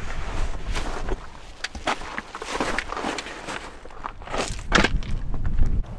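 Footsteps crunch on gravel and driftwood.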